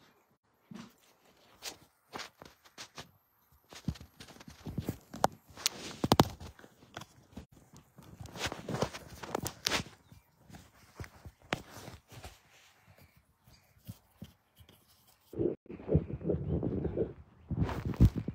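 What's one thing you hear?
Fabric rubs and rustles against a phone being handled.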